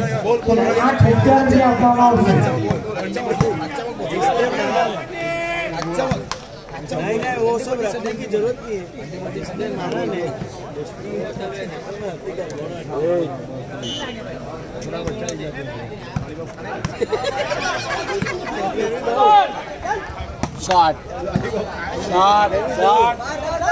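Young men shout to one another during the game.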